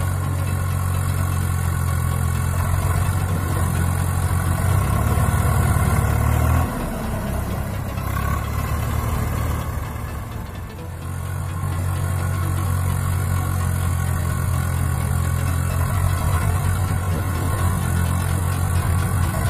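A tractor engine chugs and rumbles steadily nearby.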